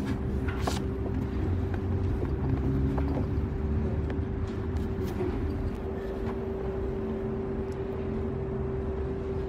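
Books slide against each other on a shelf.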